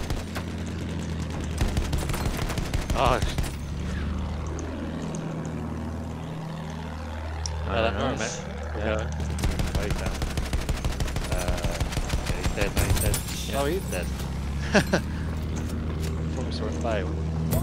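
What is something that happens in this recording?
A plane engine drones steadily.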